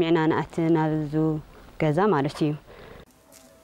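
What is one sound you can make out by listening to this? A young woman speaks close by, calmly.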